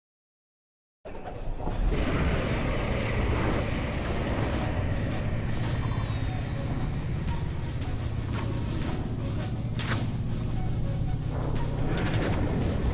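Weapons clash and magic crackles in a busy fight.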